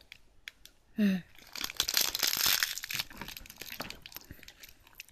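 Cardboard boxes rustle and scrape as hands handle them.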